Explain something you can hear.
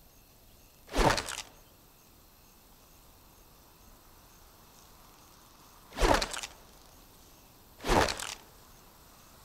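A pistol fires single loud shots that echo briefly.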